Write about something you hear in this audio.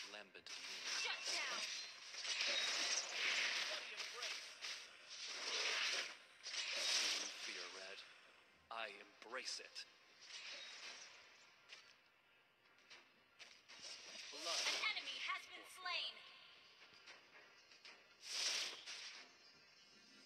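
Fighting game effects whoosh and clash in quick bursts.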